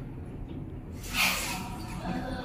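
Lift doors slide open.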